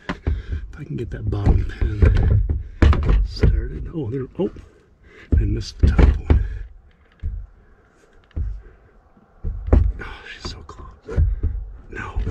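Plastic panel parts click and knock under a man's hands.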